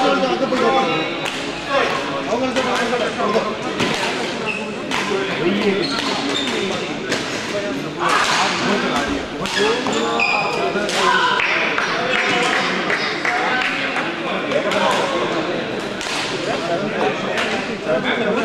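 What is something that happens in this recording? A crowd of spectators chatters and calls out.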